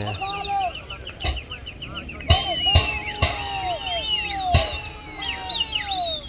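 Pigeons flap their wings as a flock takes off.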